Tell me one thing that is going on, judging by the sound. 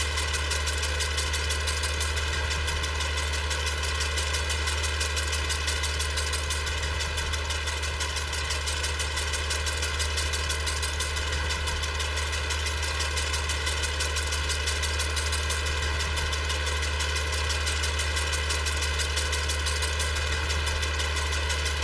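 A tractor engine chugs steadily.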